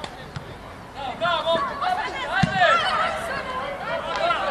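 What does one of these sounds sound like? Young men shout to each other across the pitch.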